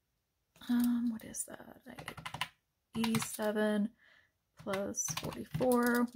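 Plastic calculator keys click as they are pressed.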